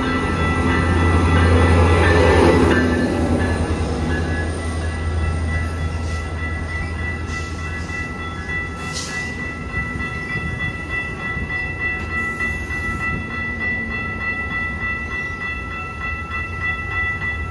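Train wheels clatter and rumble along the rails.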